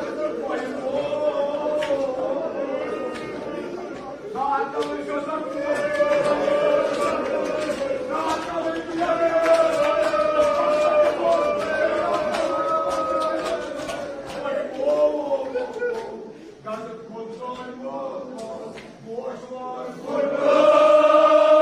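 A crowd of men chants loudly together in an echoing hall.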